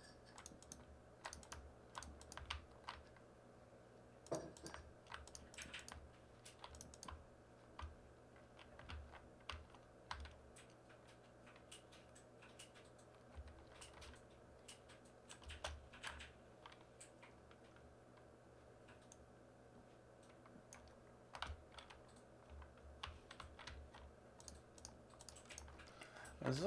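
Wooden blocks knock softly as they are placed and broken, again and again.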